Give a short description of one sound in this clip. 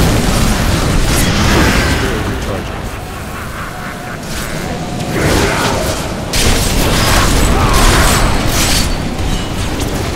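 Spells crackle and burst in quick blasts.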